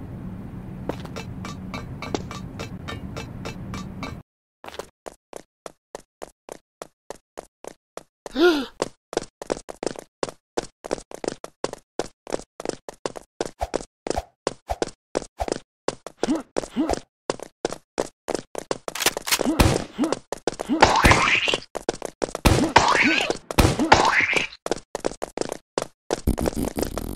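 Quick footsteps patter steadily on a hard floor.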